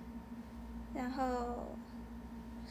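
A young woman speaks briefly and softly, close by.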